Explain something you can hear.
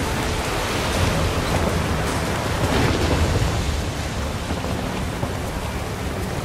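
Rough waves crash and splash against a sailing boat.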